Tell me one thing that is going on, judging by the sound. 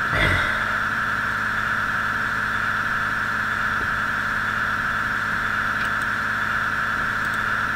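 A train rolls steadily along the tracks with a constant humming drone.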